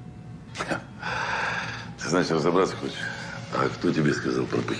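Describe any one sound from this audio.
An elderly man talks on a phone.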